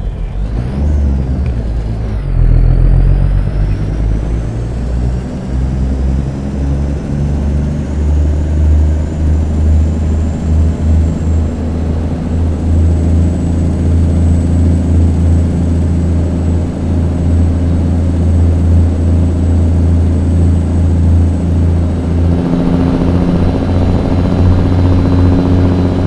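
A truck's diesel engine rumbles low and steady, rising in pitch as it picks up speed.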